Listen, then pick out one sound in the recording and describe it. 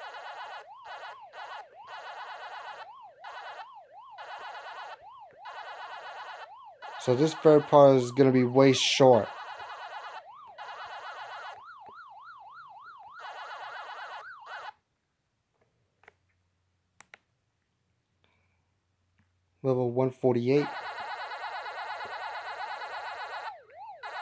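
Electronic game chirps and waka sounds play rapidly as a character eats dots.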